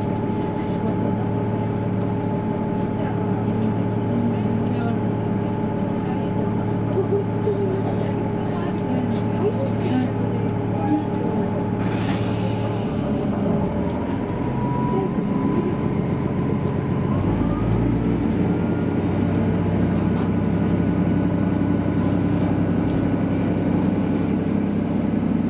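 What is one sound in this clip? A diesel train engine rumbles steadily while idling.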